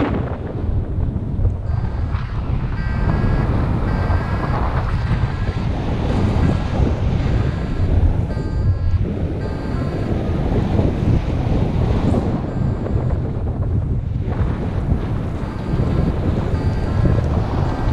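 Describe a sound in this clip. Wind buffets and roars loudly across the microphone.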